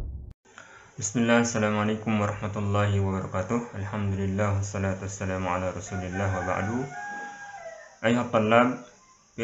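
A young man speaks calmly through a headset microphone, as if in an online call.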